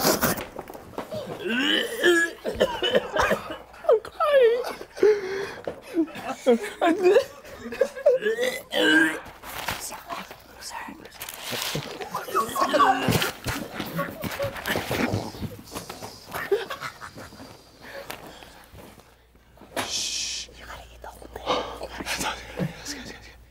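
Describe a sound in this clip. A group of young people laugh and shout excitedly close by.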